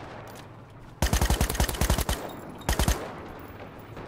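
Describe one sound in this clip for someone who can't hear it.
A rifle fires rapid, loud bursts of shots close by.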